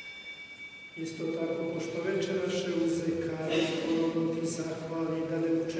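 An elderly man chants through a microphone in a reverberant hall.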